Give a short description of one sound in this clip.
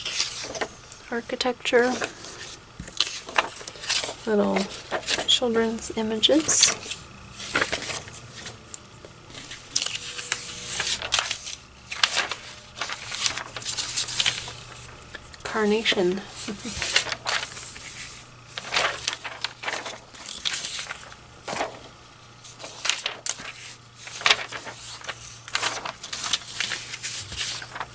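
Paper pages rustle and crinkle as they are turned and handled.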